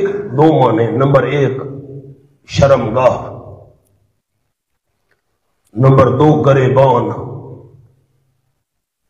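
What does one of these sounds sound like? A man speaks into a microphone with animation, pausing between phrases.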